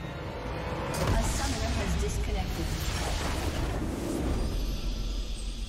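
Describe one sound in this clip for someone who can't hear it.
A game's base structure explodes with a loud crackling blast.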